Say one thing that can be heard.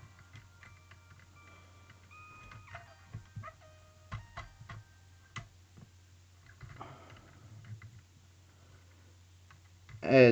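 Plastic toy parts click and clack as hands move them.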